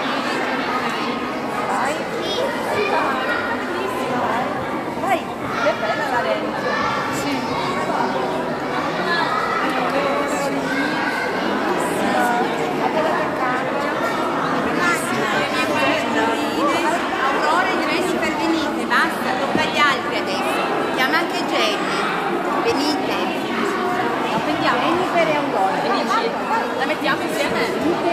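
A crowd of adults and children chatters nearby.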